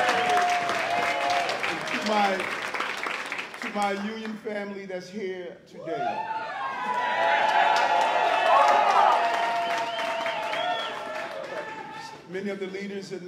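Several people clap their hands.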